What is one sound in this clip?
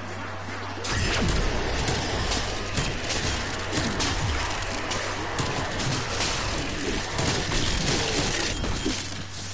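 A game energy weapon fires in rapid bursts.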